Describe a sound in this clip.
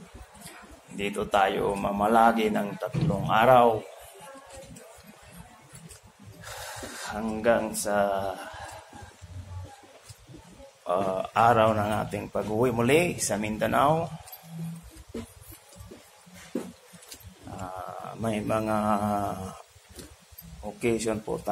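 A man talks with animation close to a phone microphone, in bursts with pauses.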